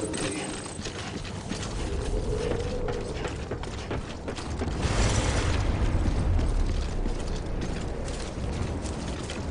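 Boots thud in steady footsteps.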